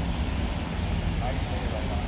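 A man talks with another man nearby.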